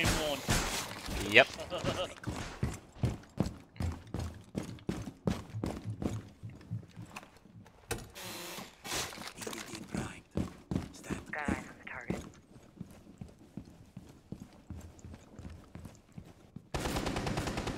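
Footsteps thud quickly on a wooden floor.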